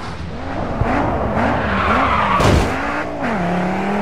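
Tyres screech as a car drifts through a turn.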